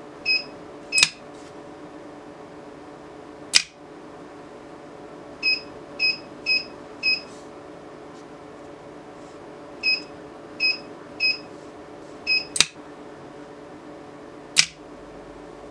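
A door lock clacks sharply.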